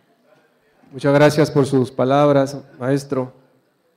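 A man speaks loudly through a microphone in an echoing room.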